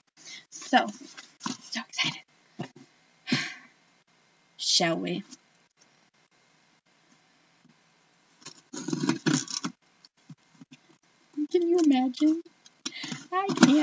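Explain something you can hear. A woman speaks with animation, close to a microphone.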